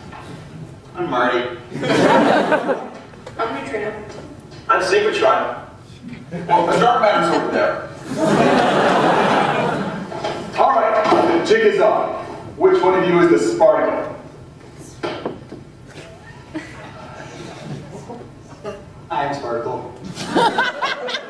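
A young man speaks loudly and with animation nearby.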